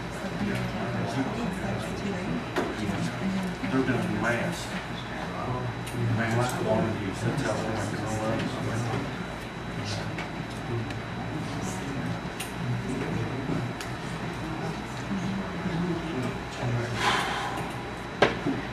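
A man speaks calmly, heard from across a room.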